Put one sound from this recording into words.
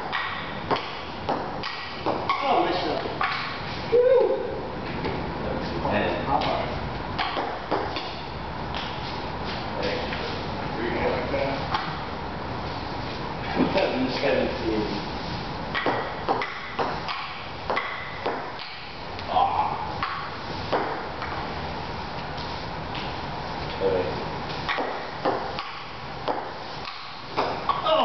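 A ping-pong ball taps sharply on a table and paddles in a room with a slight echo.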